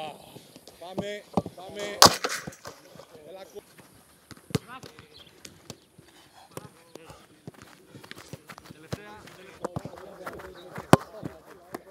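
A football is kicked hard with a dull thump.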